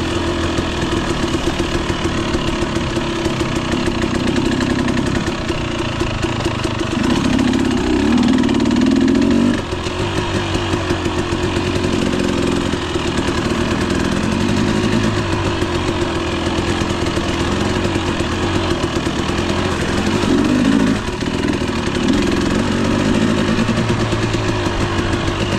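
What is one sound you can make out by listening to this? Tyres crunch over a rough dirt trail.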